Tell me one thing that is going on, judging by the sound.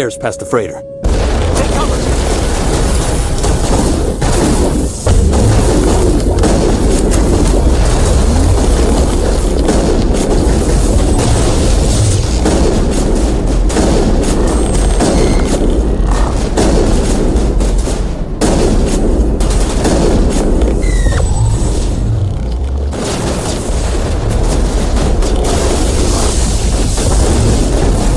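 Guns fire in rapid bursts with heavy booming blasts.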